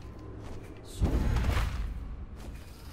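A sudden magical whoosh rushes past.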